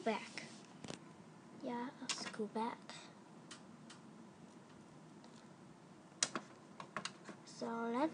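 Small plastic toy pieces click and tap together.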